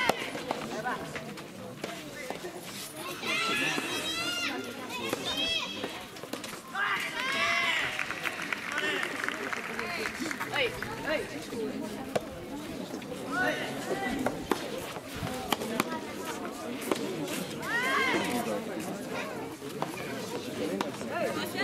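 A tennis ball is struck sharply by rackets, back and forth.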